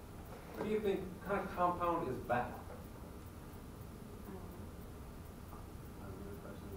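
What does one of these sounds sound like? A man speaks calmly at a distance in a room with some echo.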